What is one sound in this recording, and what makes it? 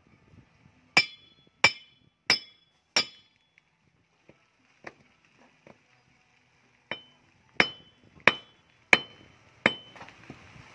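A heavy metal bar bangs down hard on a rock.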